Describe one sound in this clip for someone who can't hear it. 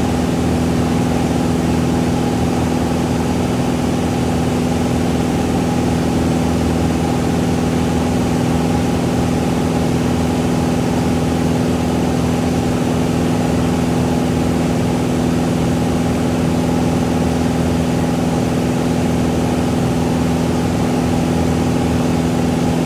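Wind rushes past the aircraft.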